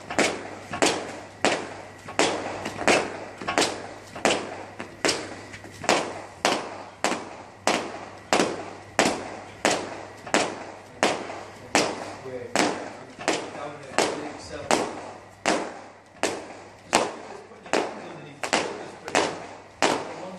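Heavy battle ropes slap hard against the floor in a steady rhythm, echoing in a large hall.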